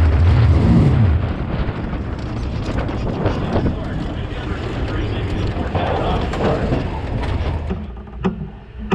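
A race car engine rumbles and idles close by.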